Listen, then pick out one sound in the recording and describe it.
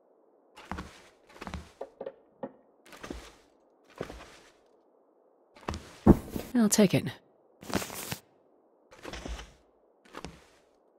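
Footsteps thud slowly across wooden floorboards.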